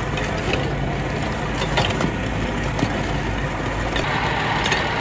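Ice blocks clatter and scrape as they are pushed across a hard surface.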